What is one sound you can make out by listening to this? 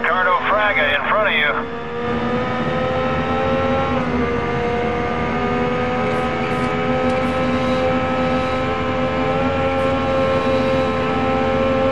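A racing car engine roars at high revs, its pitch climbing steadily.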